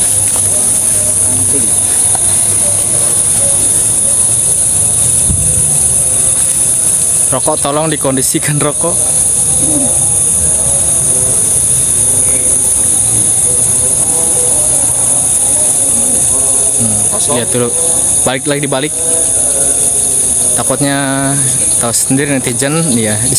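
Several men talk nearby outdoors.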